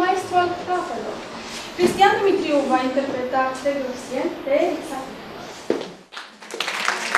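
A young woman speaks warmly into a microphone.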